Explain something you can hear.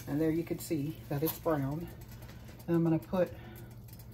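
A metal pan scrapes as it is lifted off an electric burner.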